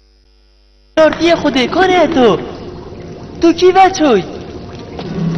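A woman sings in a high, wailing voice.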